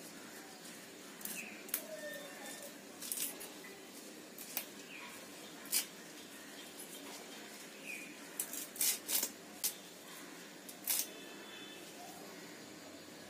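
Fresh leafy stems snap and rustle as hands pick them apart.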